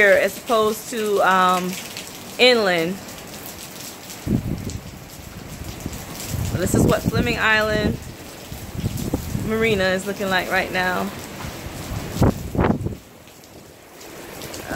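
Strong wind gusts and buffets outdoors.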